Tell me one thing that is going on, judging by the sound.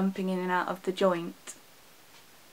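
A young woman speaks softly close to the microphone.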